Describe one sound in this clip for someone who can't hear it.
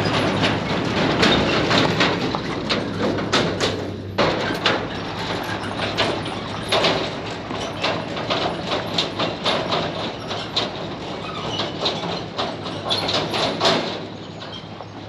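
Tyres crunch over gravel as a trailer rolls past and away.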